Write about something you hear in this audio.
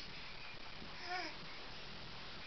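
A baby squeals briefly nearby.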